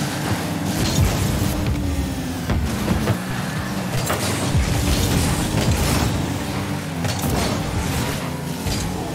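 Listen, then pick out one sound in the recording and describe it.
A ball thuds when struck by a car.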